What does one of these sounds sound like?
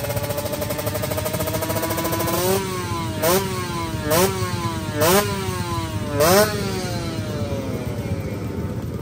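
A motorcycle engine idles, then revs sharply several times in quick bursts.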